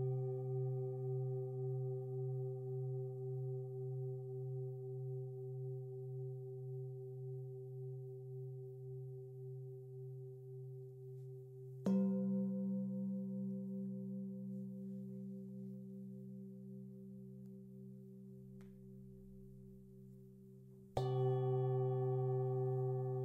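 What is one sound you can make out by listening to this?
Singing bowls ring with a deep, wavering hum that slowly fades.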